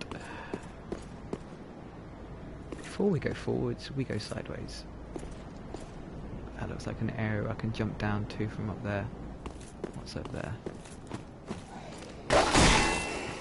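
Armoured footsteps crunch over stone and gravel.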